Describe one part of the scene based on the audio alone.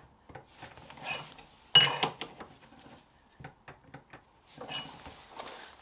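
A thin metal plate clinks and scrapes against a metal table.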